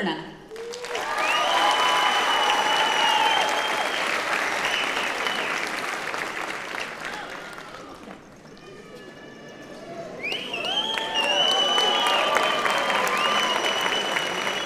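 People in an audience cheer and whoop.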